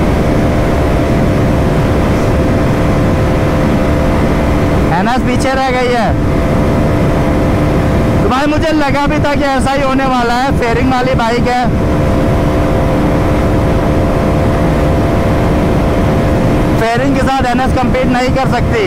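A motorcycle engine drones steadily at high speed.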